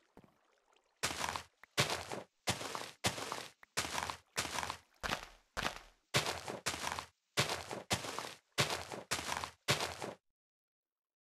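Leafy blocks crunch and rustle as they are broken, in quick, regular bursts.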